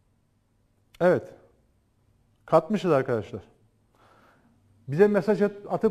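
An older man speaks calmly and clearly into a close microphone, in short phrases with pauses.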